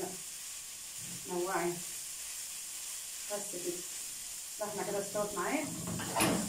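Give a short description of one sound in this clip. A spatula scrapes and stirs food in a frying pan.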